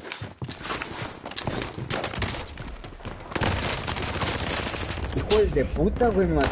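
Rapid gunfire from a video game rifle cracks in bursts.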